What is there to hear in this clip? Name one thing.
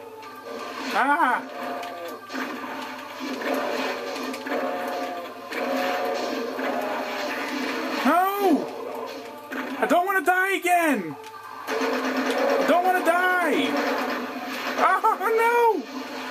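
Monsters growl and roar in a video game.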